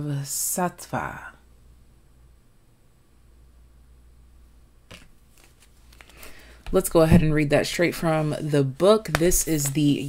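A stiff card rustles softly as it is handled.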